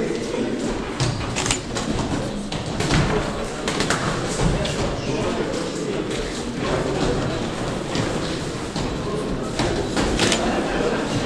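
Boxing gloves thud against each other and against bodies in quick bursts.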